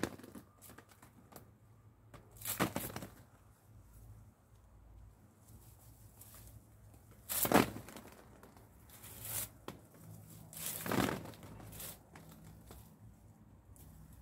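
Leaves rustle as a person strips olives from tree branches.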